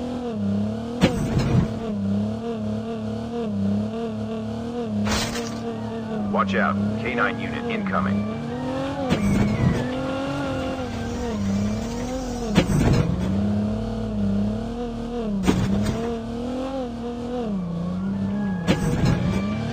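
Knocks and thuds sound as a game car bumps over the terrain.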